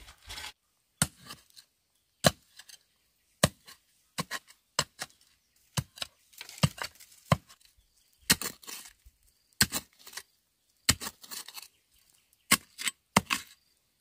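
A long metal digging blade stabs into dry, stony soil.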